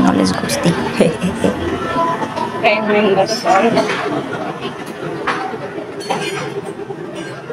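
A woman speaks close to the microphone.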